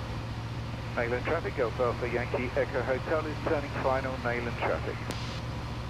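An elderly man speaks calmly through a headset microphone.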